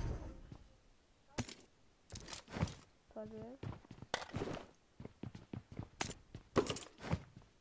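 Short clicks and rustles sound as items are picked up and moved.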